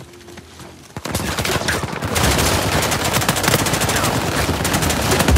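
Gunshots fire rapidly, one after another.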